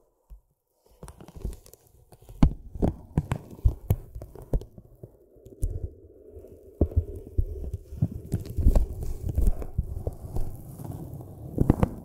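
A stick taps and scratches lightly on crinkly paper, up close.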